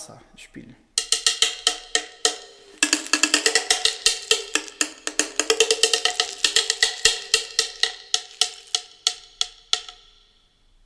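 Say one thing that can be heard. A berimbau twangs in a quick rhythm as its string is struck.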